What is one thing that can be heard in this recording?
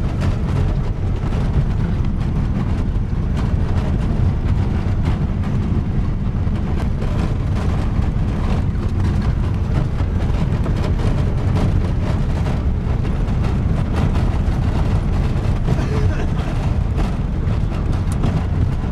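Wind buffets and rumbles outdoors.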